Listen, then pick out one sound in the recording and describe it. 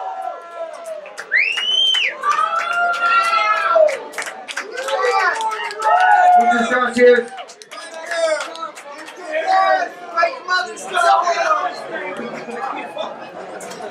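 A crowd of young men and women shout and sing loudly close by.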